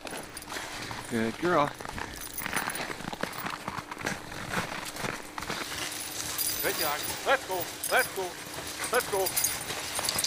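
Dogs whine and yelp excitedly outdoors.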